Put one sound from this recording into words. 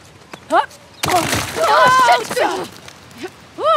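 Rocks crack loose and tumble down.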